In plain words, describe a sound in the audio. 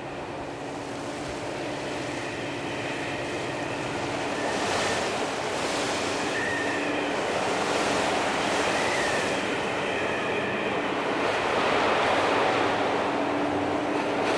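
Waves crash and rush against a boat's hull.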